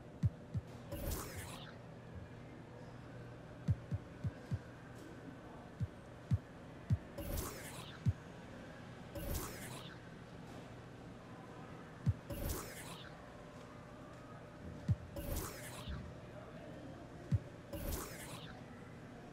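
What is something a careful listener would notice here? Short whooshing menu sounds sweep by as selections change.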